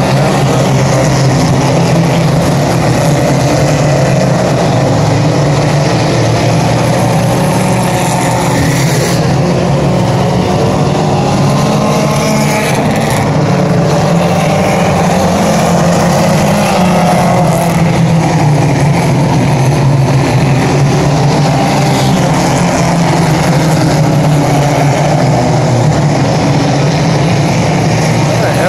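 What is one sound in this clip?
Loud race car engines roar steadily, rising and falling in pitch.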